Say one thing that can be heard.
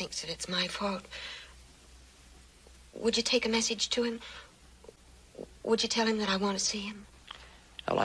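A young woman speaks tensely, close by.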